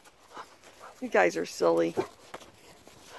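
Dogs yelp and whine playfully up close.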